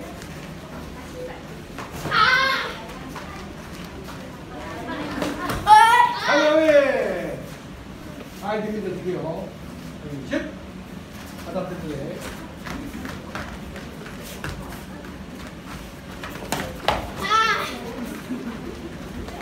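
Bare feet thud and shuffle on foam mats.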